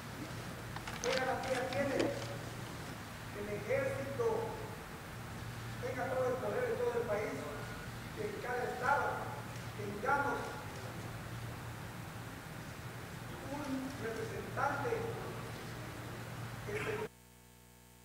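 A man speaks formally through a microphone in a large echoing hall.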